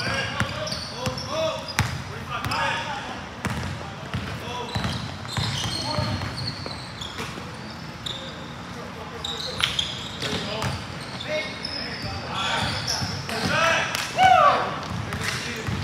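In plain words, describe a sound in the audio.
A basketball bounces on a hardwood floor with a hollow echo.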